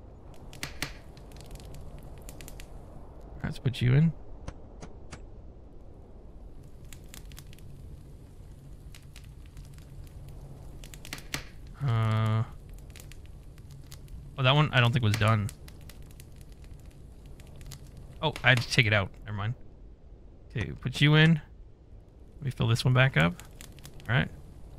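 Fires crackle and roar in furnaces.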